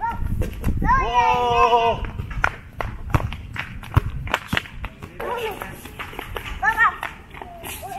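A young child shouts and squeals excitedly nearby.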